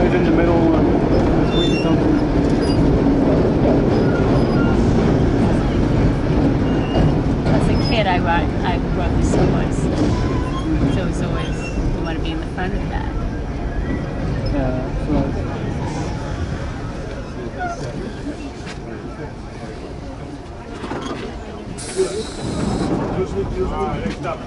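A subway train rumbles and rattles loudly through a tunnel and slows as it enters a station.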